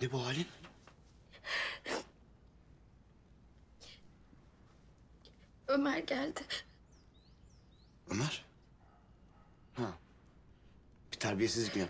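A young woman sobs and speaks in a tearful voice.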